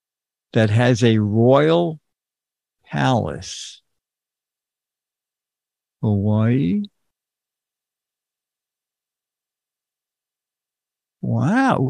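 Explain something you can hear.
An elderly man speaks calmly and closely into a microphone, in short bursts with pauses.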